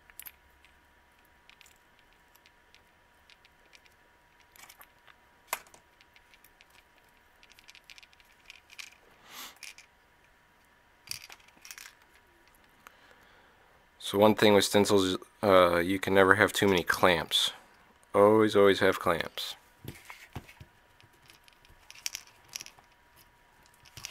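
Metal binder clips click and rattle softly in handling.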